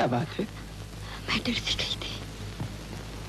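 A man speaks softly and emotionally close by.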